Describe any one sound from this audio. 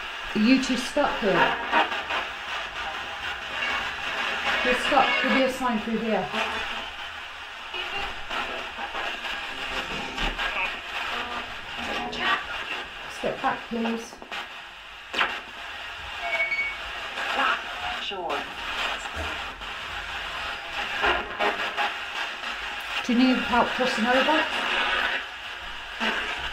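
A handheld radio gives out a steady crackling hiss.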